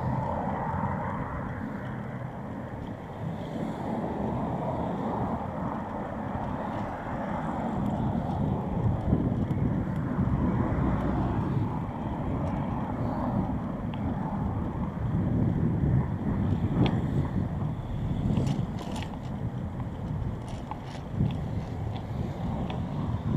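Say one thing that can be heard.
Cars drive past on a city street.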